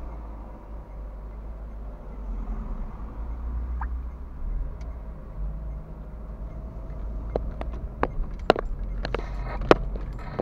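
A car engine hums steadily from inside the cabin as the car drives.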